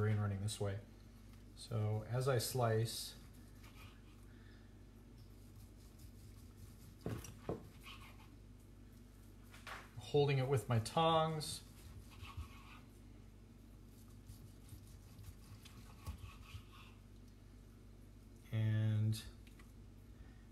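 A knife slices through cooked meat.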